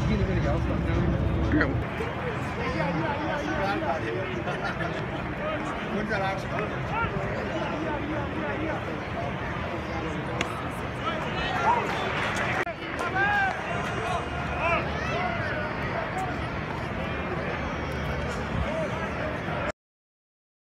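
A stadium crowd murmurs in the open air.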